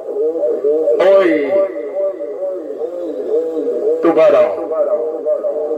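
A radio loudspeaker bursts out with a short, harsh crackle twice.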